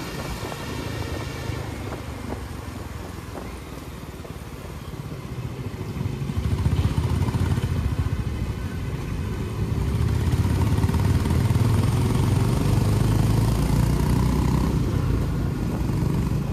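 A motorcycle engine rumbles steadily up close and grows louder.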